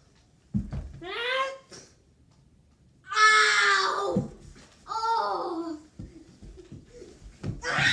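A young boy shouts and squeals playfully nearby.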